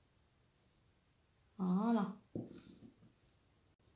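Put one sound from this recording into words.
A small glass bottle is set down and knocks on a table.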